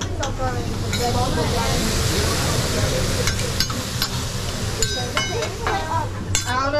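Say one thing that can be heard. Metal spatulas clink and scrape on a griddle.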